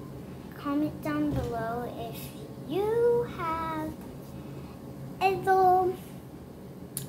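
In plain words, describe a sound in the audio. A young girl talks with animation close to the microphone.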